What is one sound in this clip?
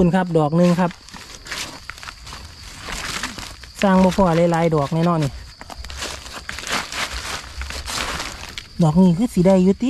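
Dry leaves rustle and crunch underfoot.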